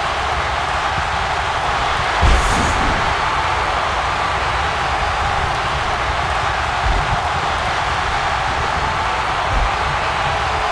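A large crowd roars and cheers throughout.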